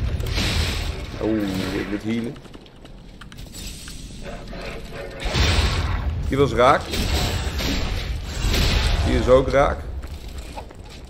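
A creature snarls and growls.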